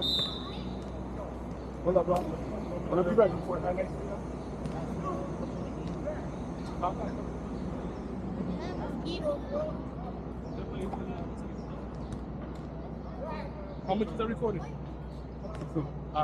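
Voices of young people chatter at a distance outdoors.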